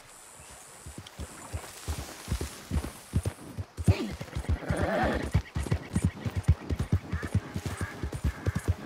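Horse hooves clop at a steady trot.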